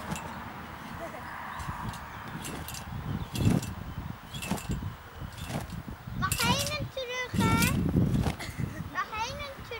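A girl's feet thump on a trampoline.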